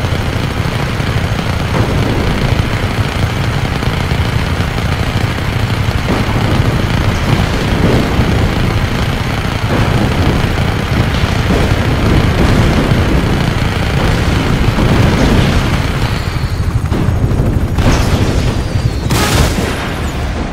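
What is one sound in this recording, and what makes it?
A helicopter's rotor roars steadily close by.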